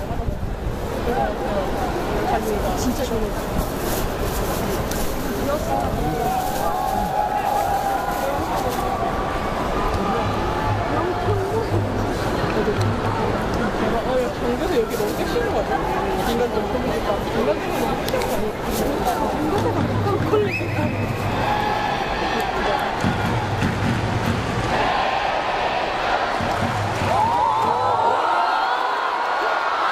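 A large stadium crowd chants, cheers and shouts throughout.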